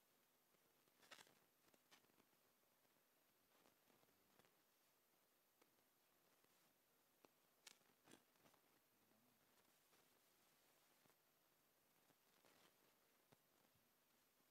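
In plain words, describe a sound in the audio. A man speaks slowly and softly into a microphone, with long pauses.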